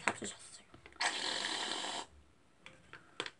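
Whipped cream sprays from a can with a hiss.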